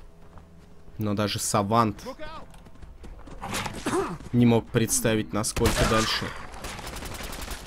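Gunshots crack sharply in quick bursts.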